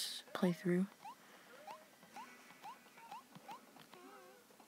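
Short rising electronic blips sound repeatedly.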